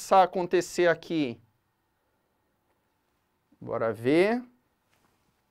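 A young man speaks clearly and with animation, close to a microphone.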